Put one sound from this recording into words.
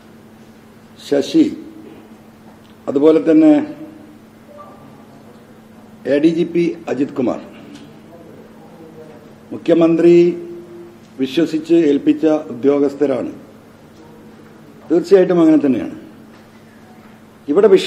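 A middle-aged man speaks into a microphone in short bursts with pauses.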